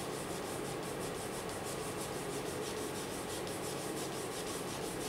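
A pencil scratches on paper in quick, short strokes.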